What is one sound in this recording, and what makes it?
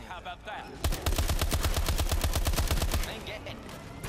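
A rapid burst of automatic gunfire rattles loudly.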